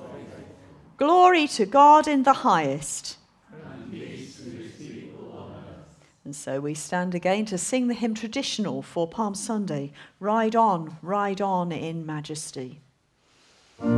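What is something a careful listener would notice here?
A congregation sings together in a chanting tone.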